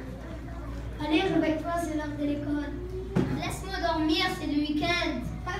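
A choir of children sings together.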